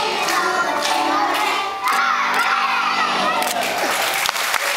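A choir of young children sings loudly in a hall.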